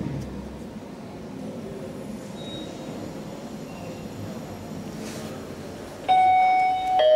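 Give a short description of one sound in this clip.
An elevator hums steadily as it moves along its shaft.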